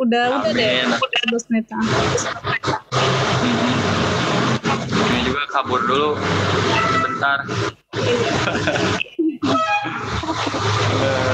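A young woman talks over an online call.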